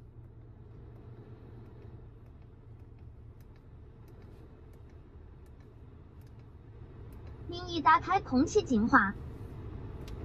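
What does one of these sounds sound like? A finger clicks buttons on a car's control panel.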